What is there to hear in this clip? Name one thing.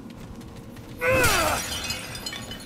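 A creature lets out a loud, falling screech.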